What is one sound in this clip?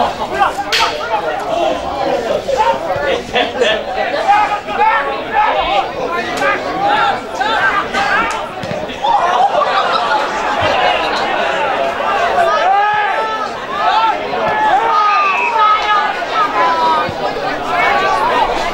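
Players shout and call out across an open field at a distance.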